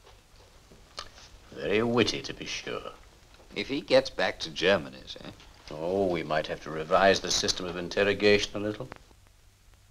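A man speaks calmly nearby.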